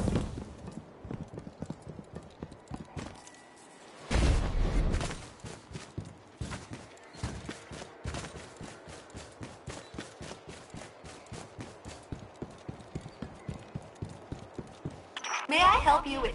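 Footsteps tread quickly and steadily over rough ground.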